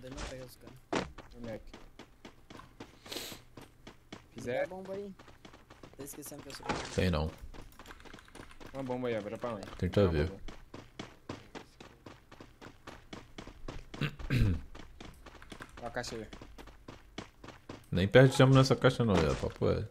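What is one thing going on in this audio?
Quick footsteps run over grass.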